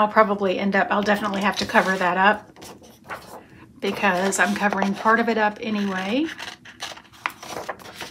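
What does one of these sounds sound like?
A sheet of paper rustles as it is handled.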